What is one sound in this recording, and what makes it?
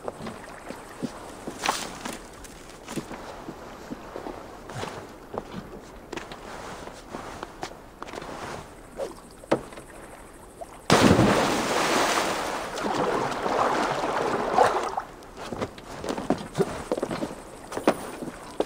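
Footsteps knock on a wooden deck.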